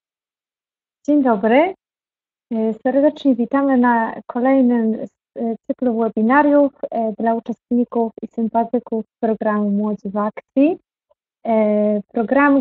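A young woman speaks calmly and cheerfully through an online call.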